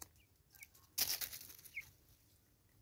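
A bird flaps its wings in a brief rustling burst.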